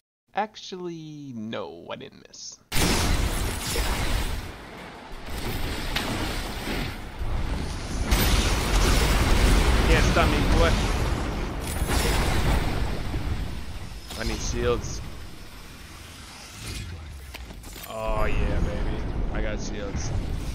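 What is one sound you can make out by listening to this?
A middle-aged man talks with animation through a microphone.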